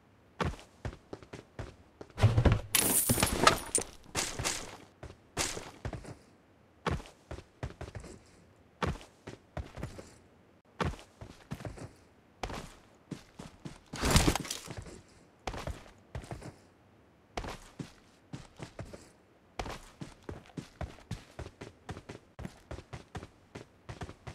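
Footsteps crunch steadily over dirt and grass.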